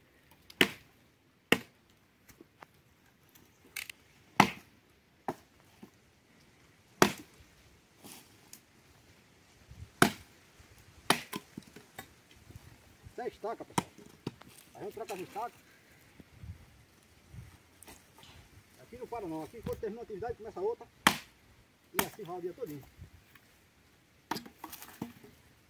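An axe chops into wood with sharp, hollow thuds.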